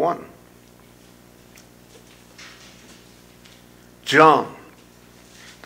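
An older man reads aloud slowly through a microphone, with long pauses.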